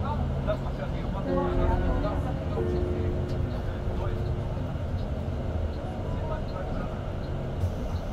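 A vehicle's engine rumbles steadily while driving along a road.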